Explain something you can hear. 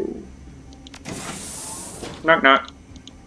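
A heavy door slides open with a hiss.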